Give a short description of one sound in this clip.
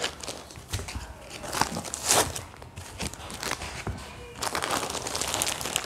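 Plastic wrapping crinkles.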